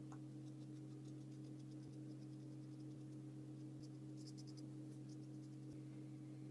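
A paintbrush softly strokes across paper.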